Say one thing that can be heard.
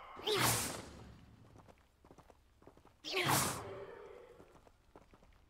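Footsteps crunch on dry earth.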